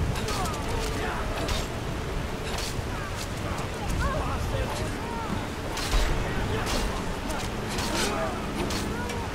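A fire spell crackles and roars.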